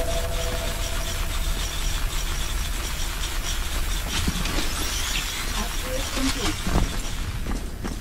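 Electric sparks crackle and fizz.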